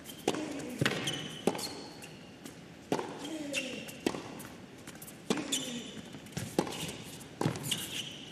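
A tennis ball is struck hard with a racket, back and forth, in a large echoing hall.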